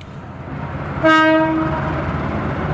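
A diesel locomotive horn blasts loudly.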